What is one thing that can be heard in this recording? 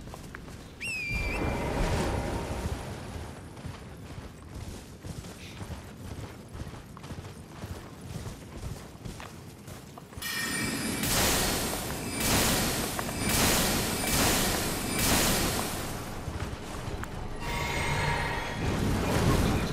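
Horse hooves gallop over grass.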